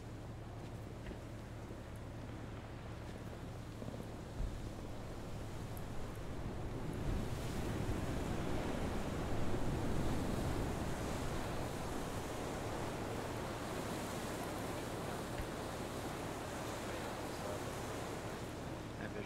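Wind roars steadily in gusts.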